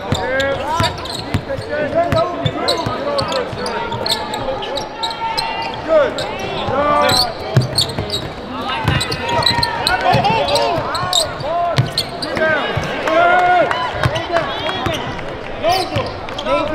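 A basketball thumps as it is dribbled on the floor.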